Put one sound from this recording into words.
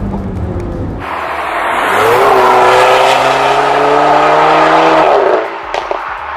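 A car engine roars loudly as the car speeds past and fades away.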